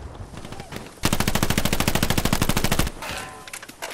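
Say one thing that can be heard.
A submachine gun fires a long, rapid burst.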